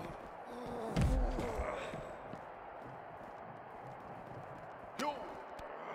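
Punches thud and smack during a brawl.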